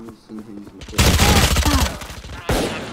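A rifle fires shots.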